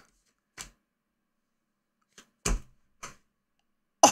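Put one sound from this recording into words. Cards rustle and tap in a man's hands.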